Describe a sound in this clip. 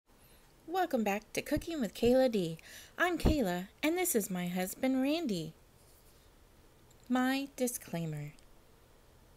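A young woman speaks cheerfully.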